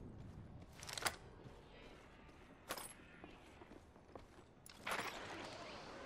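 Sharp clicks and clanks sound as gear is picked up.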